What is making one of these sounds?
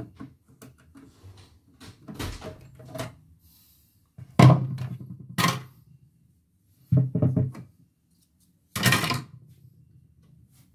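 Plastic parts of a sewing machine click softly as hands handle them.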